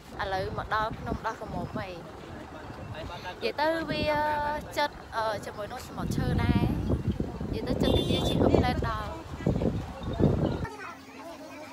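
A young woman talks close by with animation.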